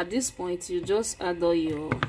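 A spoon stirs through thick stew.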